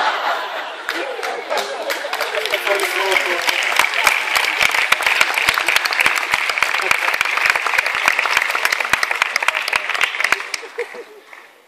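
A crowd claps rapidly.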